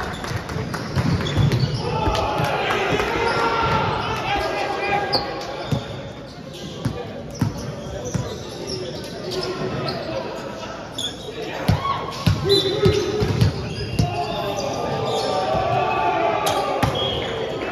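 A volleyball thuds as it is hit and bounces on the floor.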